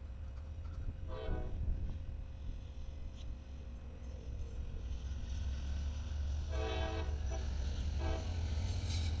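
A train horn blows in short blasts.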